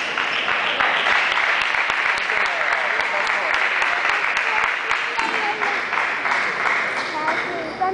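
A crowd of people murmurs and chatters in the background.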